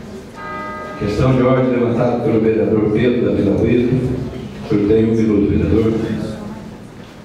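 A man speaks calmly through a microphone and loudspeakers in an echoing hall.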